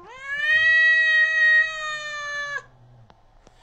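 A cat meows loudly and long, close by.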